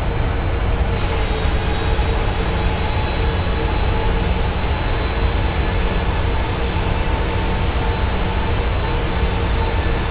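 A passing jet airliner roars steadily.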